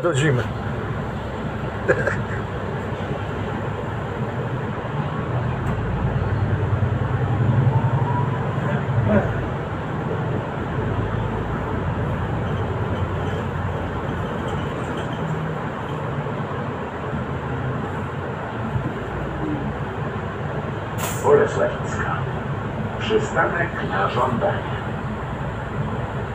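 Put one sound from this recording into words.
A bus engine hums steadily while the bus drives along a road.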